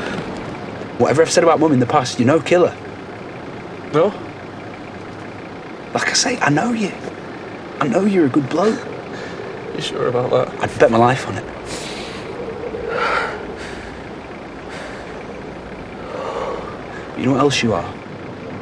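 A man speaks close by in a strained, emotional voice.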